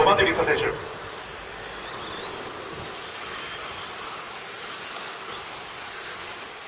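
Small electric model cars whine as they race past.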